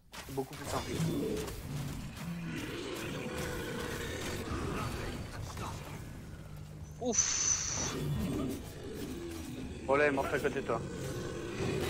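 Weapons strike and magic blasts crackle in a fight.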